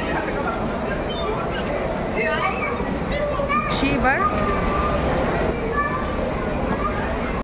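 Voices of a crowd murmur and echo in a large indoor hall.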